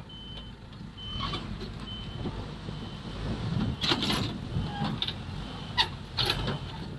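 A disc harrow scrapes and rattles through the soil.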